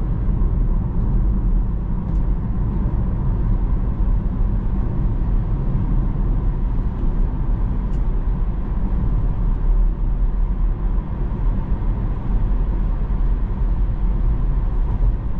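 Road noise rumbles steadily inside a moving car.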